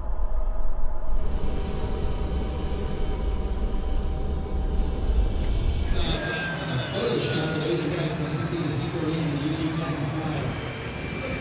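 A jet engine roars steadily nearby.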